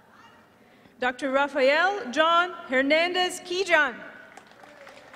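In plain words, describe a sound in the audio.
A crowd of young people cheers and whoops loudly in a large hall.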